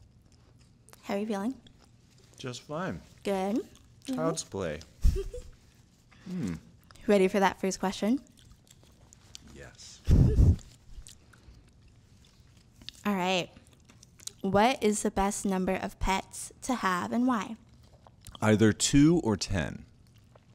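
A woman talks and laughs into a microphone.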